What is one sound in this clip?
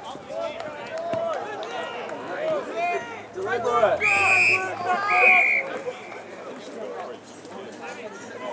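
Men on the sideline shout and call out loudly outdoors.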